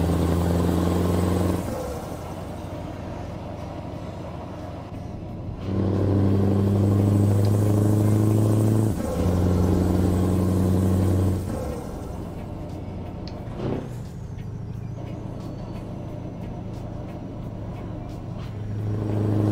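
A heavy truck engine drones steadily, growing louder and quieter by turns.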